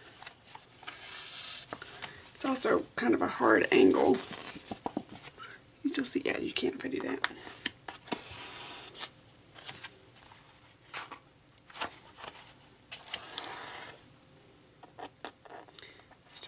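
Thread rasps as it is pulled through stiff card.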